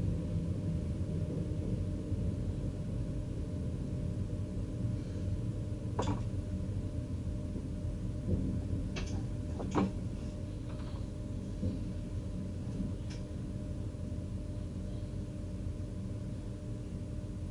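A train rumbles steadily along the rails.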